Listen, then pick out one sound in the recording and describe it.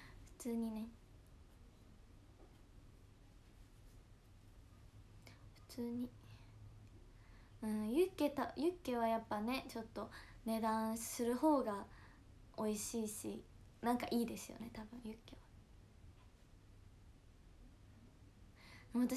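A young woman talks calmly and close to a microphone.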